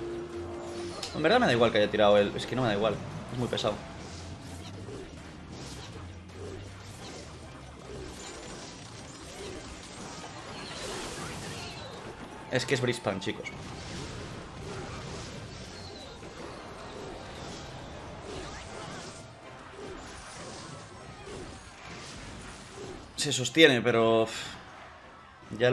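Video game effects chime and burst.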